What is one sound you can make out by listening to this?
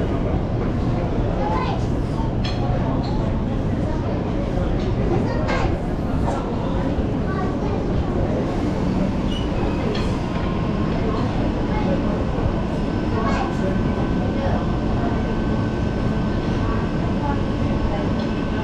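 A young woman talks calmly close to the microphone.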